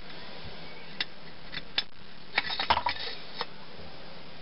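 A metal blade clinks and knocks against a metal vise.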